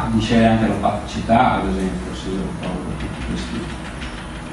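A man speaks calmly in an echoing room.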